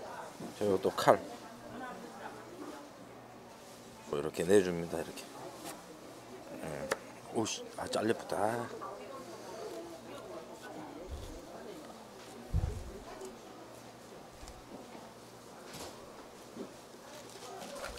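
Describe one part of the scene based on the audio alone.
A knife scrapes and taps on a wooden cutting board.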